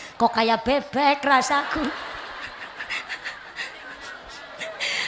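A young woman speaks with animation through a microphone over loudspeakers, in a large echoing hall.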